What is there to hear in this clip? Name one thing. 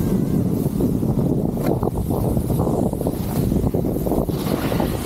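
Skis scrape and hiss over snow.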